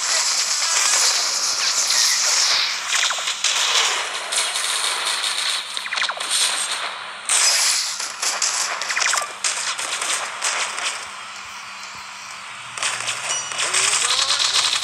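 Gunfire and explosions crackle in rapid bursts.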